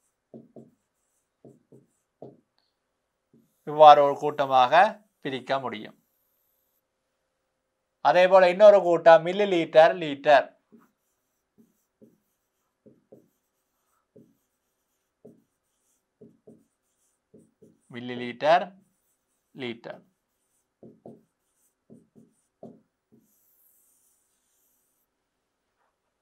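A marker squeaks and taps on a board.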